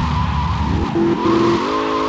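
Car tyres screech on asphalt.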